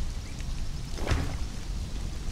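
A heavy stone block thuds into place.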